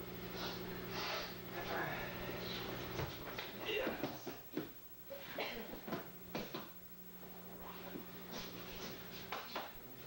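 Bare feet shuffle and slap on a mat.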